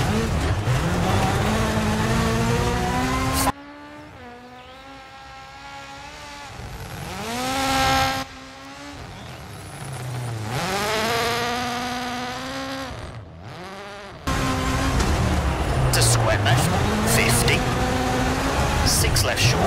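A rally car engine revs loudly from inside the cabin, rising and falling as gears change.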